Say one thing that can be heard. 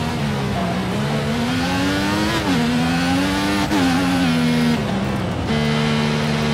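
A racing car engine roars, its pitch rising and dropping through gear changes.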